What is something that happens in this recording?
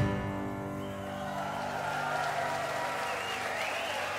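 An acoustic guitar plays a chord that rings out and fades.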